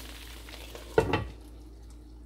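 A glass lid clanks onto a pan.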